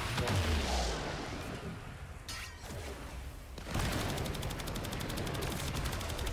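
Heavy metallic footsteps of a large walker thud.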